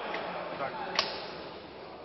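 A clapperboard snaps shut with a sharp clack.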